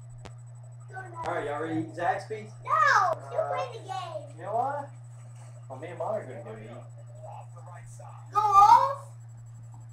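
A young boy talks excitedly nearby.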